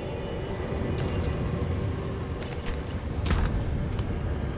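Game menu sounds click sharply as items are opened.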